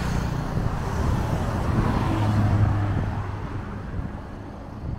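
A van rolls by with tyres humming on the road.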